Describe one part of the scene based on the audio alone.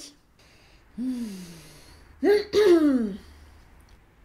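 A young woman lets out drawn-out, sliding vocal sounds close by.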